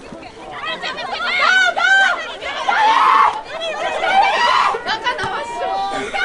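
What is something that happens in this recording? A crowd of spectators cheers loudly.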